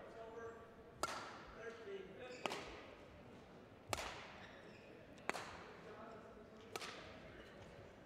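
Rackets strike a shuttlecock in a quick back-and-forth rally in a large echoing hall.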